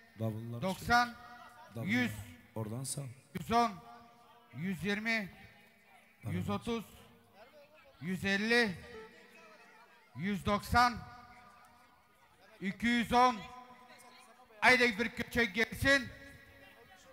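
A man calls out loudly through a loudspeaker in short, echoing phrases outdoors.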